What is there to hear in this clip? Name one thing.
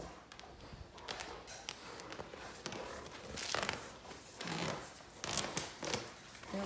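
Two dogs growl playfully while tugging at a cloth.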